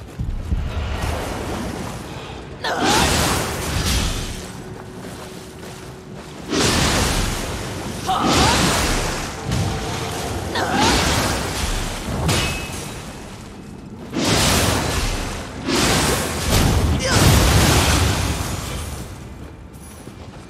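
Blades swing and slash through the air in bursts.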